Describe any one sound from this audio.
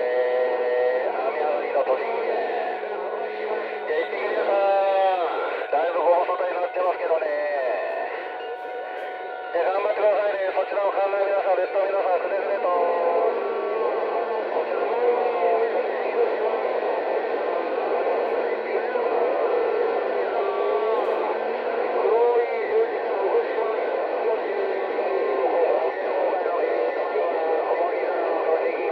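A radio receiver hisses with static and warbling, distorted signals.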